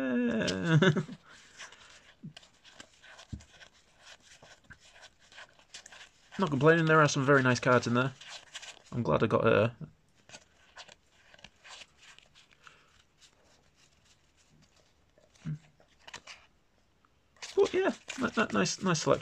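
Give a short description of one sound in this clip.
Playing cards slide and flick against each other as they are sorted by hand.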